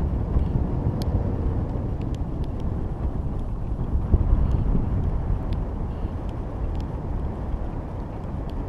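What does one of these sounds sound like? Small hanging ornaments tinkle and clink softly as they sway.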